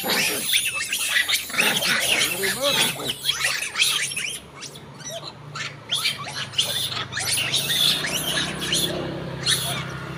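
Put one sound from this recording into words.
Monkeys chatter and squeak shrilly close by.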